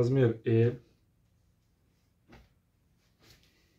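Fabric rustles softly as clothes are handled and folded.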